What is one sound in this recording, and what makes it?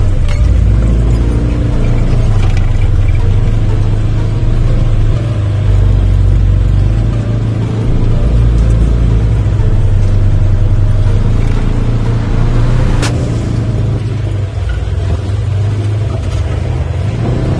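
An off-road vehicle's engine rumbles loudly close by, rising and falling.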